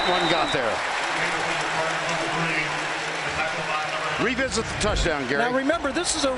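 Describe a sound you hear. A large crowd roars in an open stadium.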